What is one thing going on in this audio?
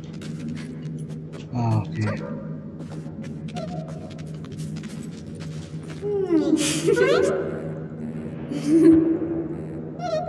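Light footsteps patter on soft ground.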